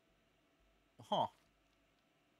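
A short swooping game sound plays.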